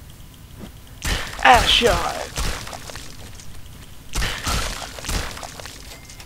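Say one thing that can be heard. A club strikes a creature with heavy, dull thuds.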